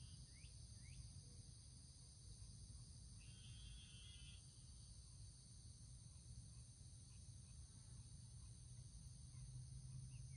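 An engine idles with a steady low rumble close by.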